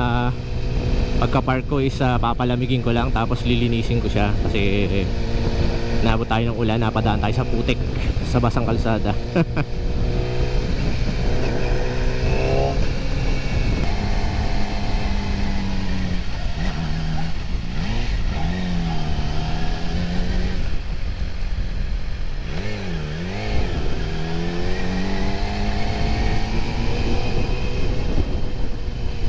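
A motorcycle engine revs and drones up close, rising and falling in pitch.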